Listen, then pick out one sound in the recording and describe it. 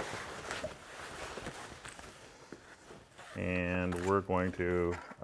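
Fabric rustles and slides as hands smooth and fold it.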